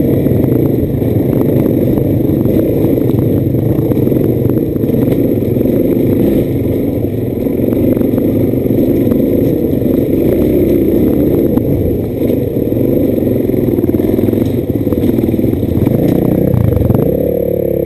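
Stones and dirt crunch and clatter under knobby tyres.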